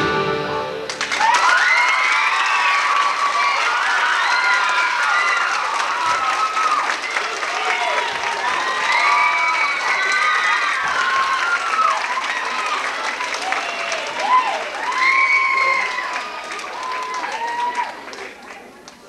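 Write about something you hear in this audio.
A crowd cheers, shouts and whistles loudly in a large echoing hall.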